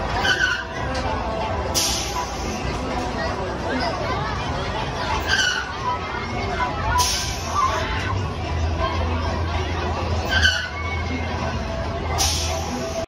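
An amusement ride rumbles and whooshes as it swings back and forth.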